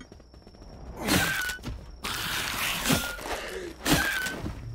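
Game fighting sounds burst out loudly with hits and crashes.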